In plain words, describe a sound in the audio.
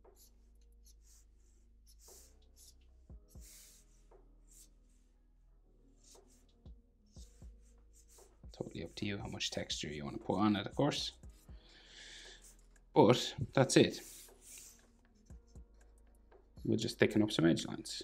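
A marker squeaks and scratches on paper.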